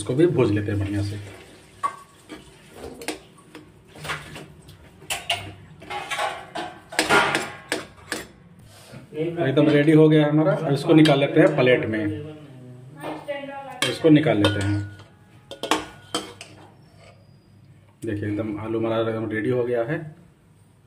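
A metal spatula scrapes and taps against a metal pan.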